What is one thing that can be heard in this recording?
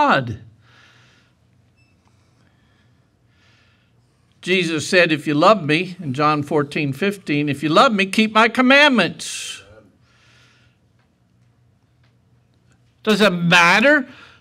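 An elderly man preaches with emphasis through a microphone, in pauses.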